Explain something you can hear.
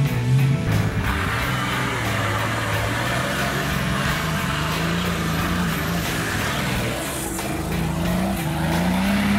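An off-road vehicle's engine revs and labours loudly.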